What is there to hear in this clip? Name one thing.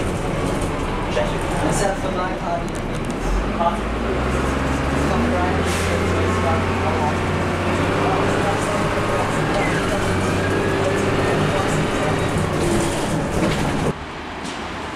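A bus engine rumbles and revs as the bus drives along.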